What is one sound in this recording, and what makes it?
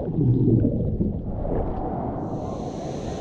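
Bubbles gurgle and rumble underwater.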